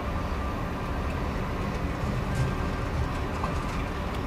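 A metal cart rattles as it is pushed along.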